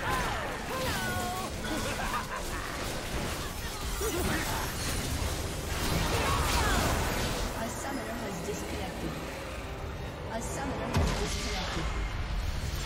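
Magic spells crackle and burst in a fast fantasy battle.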